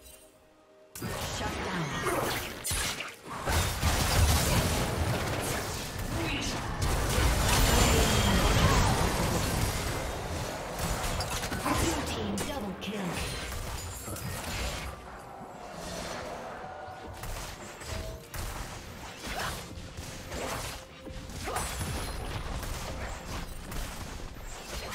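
Game spells blast and crackle in a fast fight.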